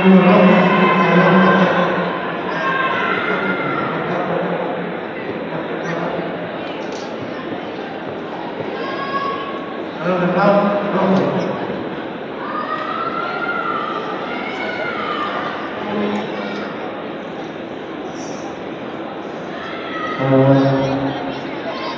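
People chatter nearby in a large echoing hall.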